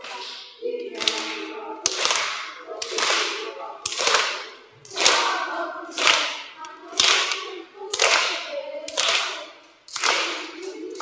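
Children clap their hands in a steady rhythm.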